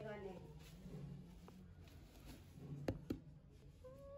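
A cardboard box lid rustles and flaps open.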